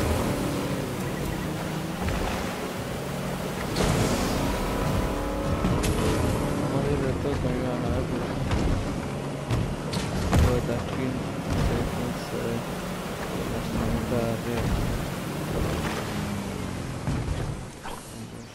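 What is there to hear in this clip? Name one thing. A motorboat engine drones at speed over water.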